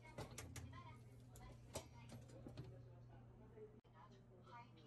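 A latch clicks and rattles as a seat tray is handled.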